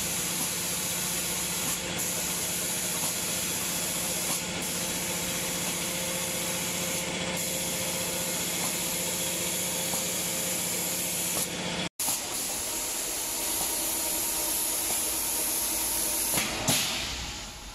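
A machine hums and whirs steadily.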